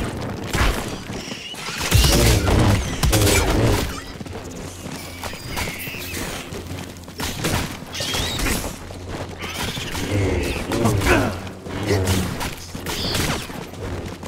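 Creatures screech and snarl.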